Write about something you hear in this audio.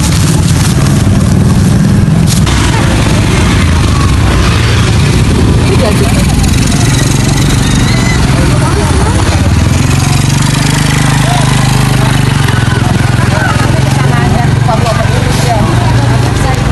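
Motorcycle engines hum and pass by close.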